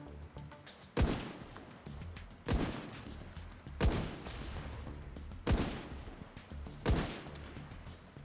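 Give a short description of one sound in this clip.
Sniper rifle shots ring out one after another, each followed by a short echo.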